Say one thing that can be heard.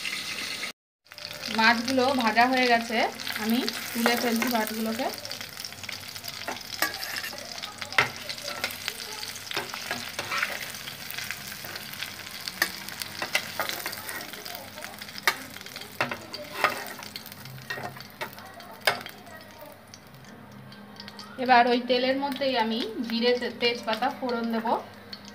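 Hot oil sizzles and crackles in a pan.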